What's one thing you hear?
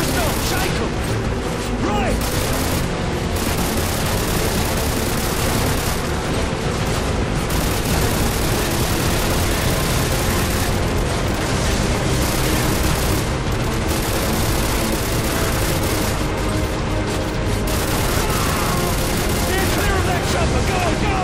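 A motorboat engine roars steadily at speed.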